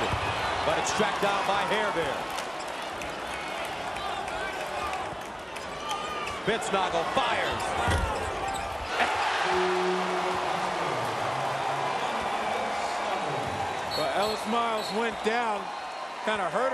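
A large crowd roars in an echoing arena.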